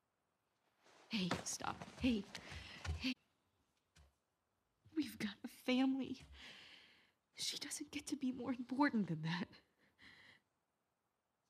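A young woman speaks softly and emotionally, close by.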